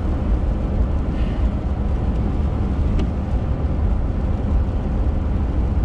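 Windshield wipers swish across the glass once.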